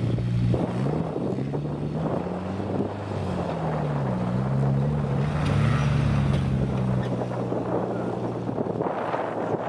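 A car engine revs up and down nearby.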